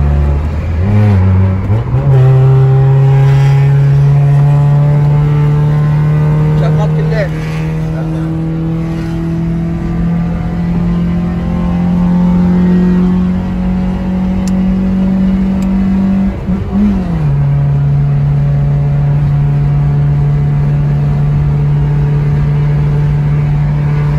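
A car engine drones steadily from inside the car, its pitch shifting now and then.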